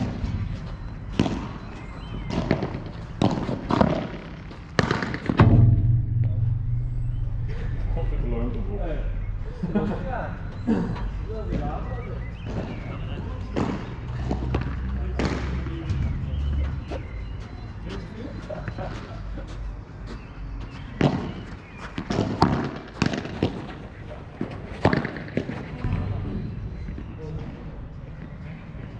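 Rackets strike a ball with sharp pops.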